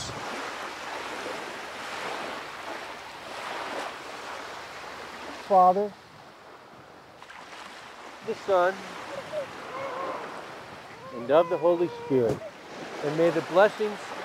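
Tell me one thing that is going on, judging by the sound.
Small waves wash onto a beach.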